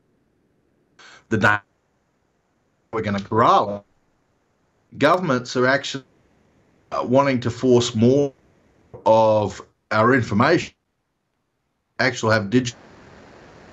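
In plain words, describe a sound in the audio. A middle-aged man speaks calmly over an online call, in short phrases with pauses.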